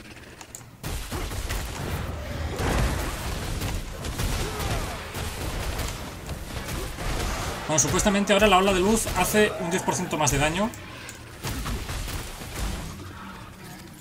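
Game combat sounds clash and boom.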